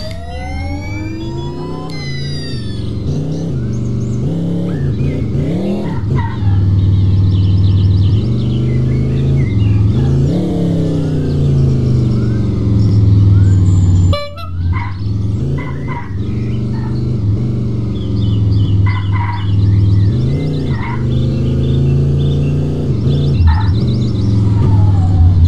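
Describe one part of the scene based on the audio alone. A car engine revs up and down as it races along.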